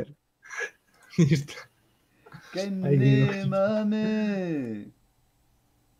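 A young man laughs and calls out loudly into a close microphone.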